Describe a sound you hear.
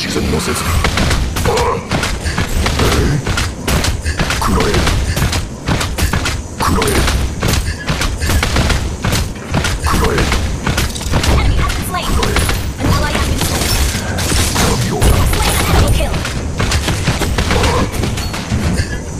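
Magical blasts and impacts crackle and boom in quick succession.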